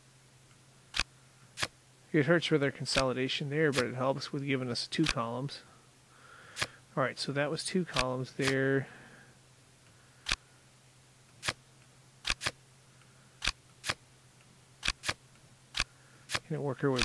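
Playing cards snap into place with short, sharp clicks.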